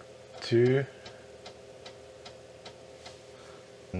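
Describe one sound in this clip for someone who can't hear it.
A disk drive clicks steadily.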